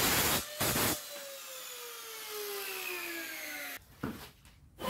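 A circular saw blade whirs and slowly winds down.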